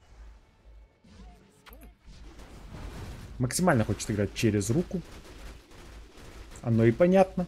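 Magic spells crackle and whoosh in a battle.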